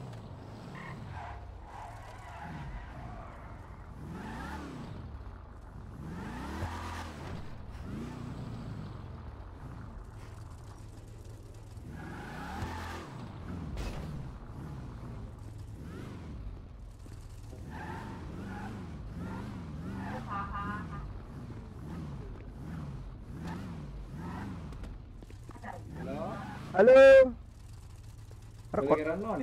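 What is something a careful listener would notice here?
A car engine revs and rumbles.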